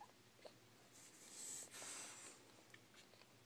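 Fabric rustles softly as a small animal shifts in it.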